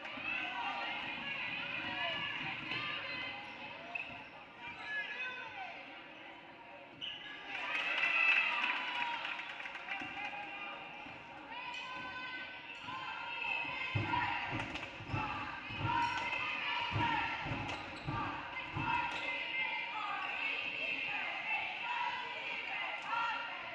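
Spectators in a large echoing gym cheer and call out.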